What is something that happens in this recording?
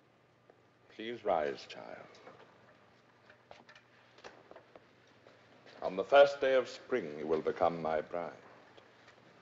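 A man speaks solemnly.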